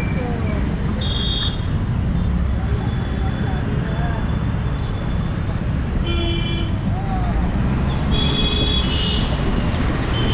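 Vehicle horns honk nearby in traffic.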